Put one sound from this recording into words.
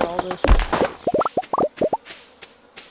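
Short rising pops sound as items are picked up.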